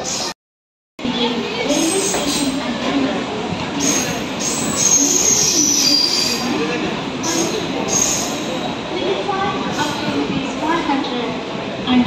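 A crowd of people chatters on a busy platform close by.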